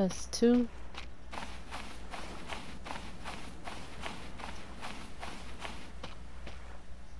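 Footsteps crunch steadily over sand and through brush.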